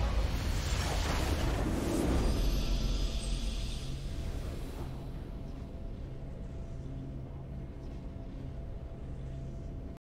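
Low sustained music plays.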